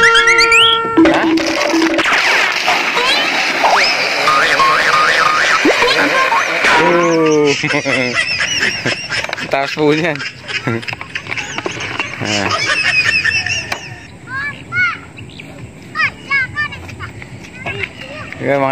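Young children shout and laugh nearby.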